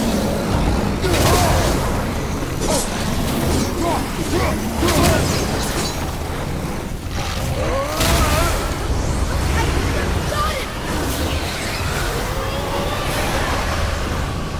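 An axe strikes enemies with heavy thuds and clangs.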